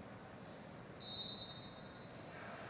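A referee's whistle blows a short blast.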